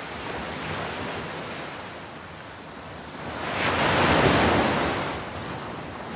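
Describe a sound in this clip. A wave breaks and surges up the beach.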